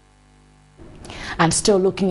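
A young woman speaks clearly into a microphone, like a news presenter reading out.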